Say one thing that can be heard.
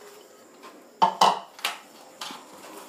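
A metal bowl clunks on a hard counter.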